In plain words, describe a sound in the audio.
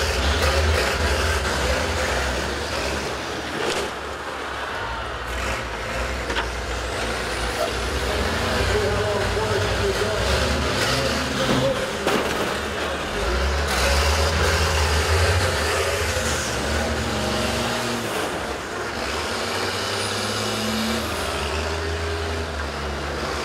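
Bus engines rumble and roar steadily outdoors.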